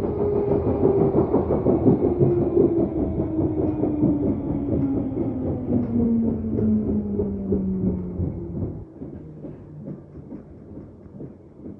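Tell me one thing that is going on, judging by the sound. A train rumbles and rattles along the track.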